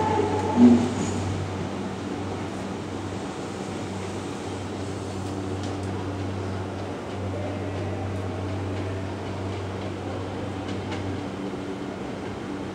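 A distant train hums as it slowly approaches.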